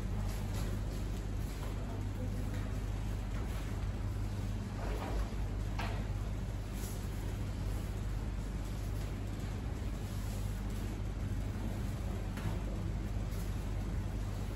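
A child's bare feet step and pivot on a foam mat.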